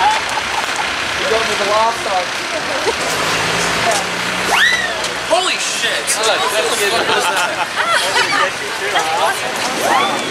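A crowd of men and women chatter and call out cheerfully nearby, outdoors.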